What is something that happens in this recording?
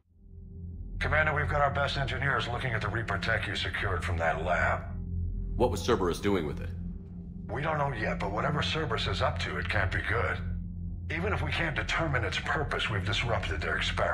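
A middle-aged man speaks calmly through a radio transmission.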